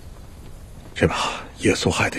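A man speaks loudly and forcefully close by.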